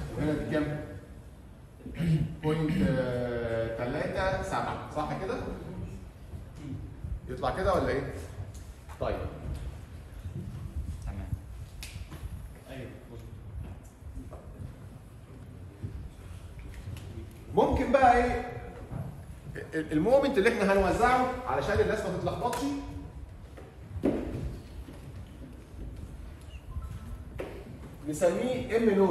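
A man lectures with animation.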